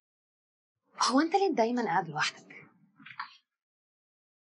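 A woman speaks quietly and close by.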